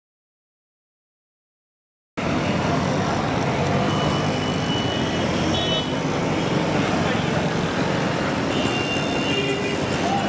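Car horns honk nearby.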